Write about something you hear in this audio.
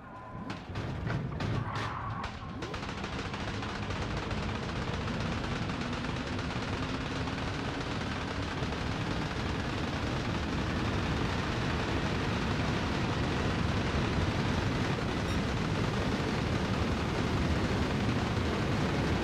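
Tyres rumble over the road surface.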